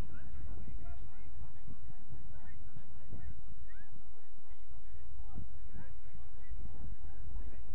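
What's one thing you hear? Players shout and call out across an open field at a distance.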